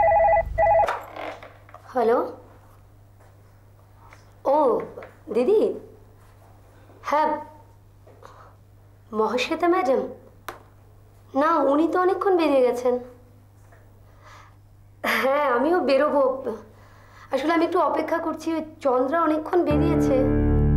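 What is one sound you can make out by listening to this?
A woman speaks into a phone with animation, close by.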